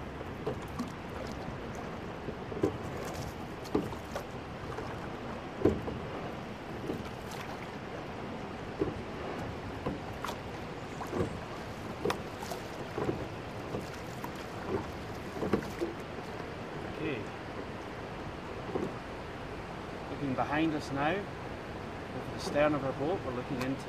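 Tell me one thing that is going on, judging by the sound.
Water splashes and gurgles against oars and hull.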